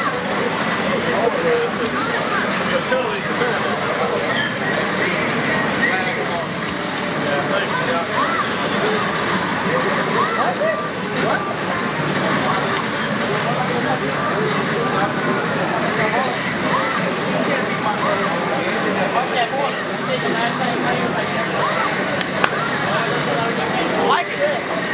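Punches and kicks from a fighting game thump and crack through a television speaker.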